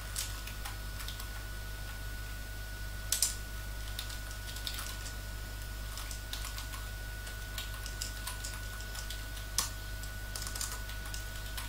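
Keyboard keys click sharply now and then.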